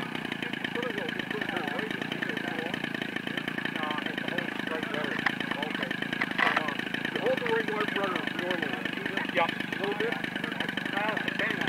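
A model airplane engine buzzes steadily nearby, outdoors.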